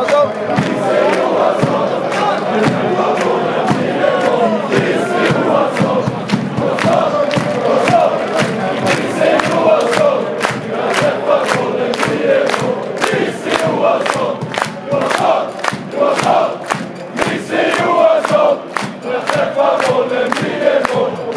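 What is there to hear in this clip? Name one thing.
A large crowd sings and chants loudly in an open stadium.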